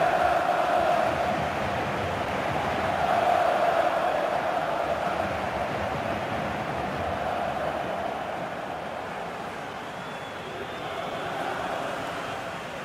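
A large stadium crowd cheers and roars steadily throughout.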